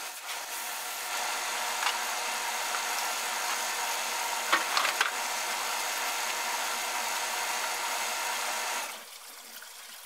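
Water sprays steadily from a hose.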